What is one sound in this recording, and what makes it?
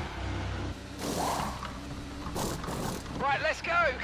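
Pneumatic wheel guns whir in short bursts.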